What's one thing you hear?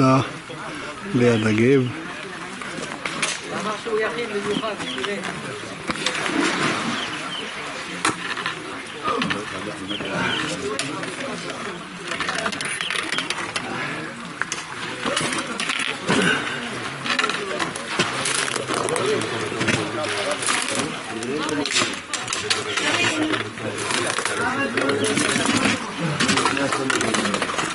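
Men and women chat outdoors nearby.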